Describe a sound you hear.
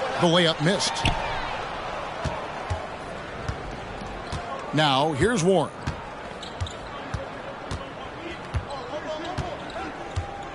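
A basketball bounces on a hard court in quick thumps.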